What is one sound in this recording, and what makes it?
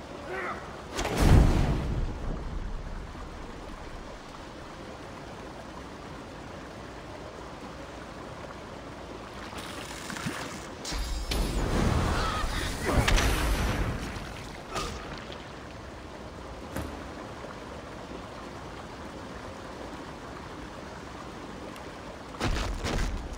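Heavy blasts boom now and then.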